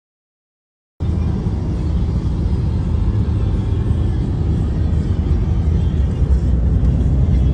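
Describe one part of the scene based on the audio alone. A car engine and tyres rumble steadily on a road from inside the car.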